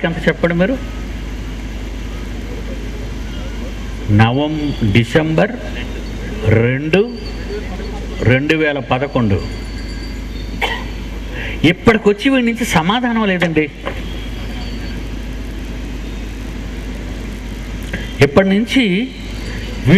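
An elderly man speaks slowly and emphatically through a microphone, with long pauses.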